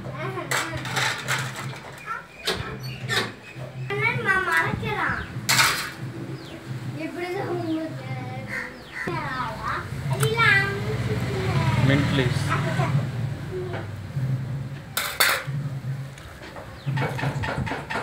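Hands squish and toss chopped vegetables in a metal bowl.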